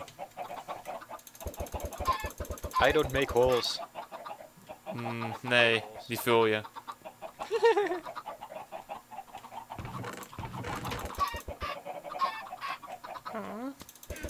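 Chickens cluck.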